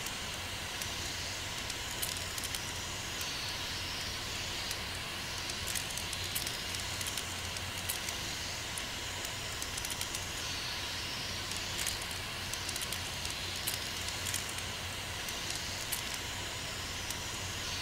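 Lock dials click as they turn, one notch at a time.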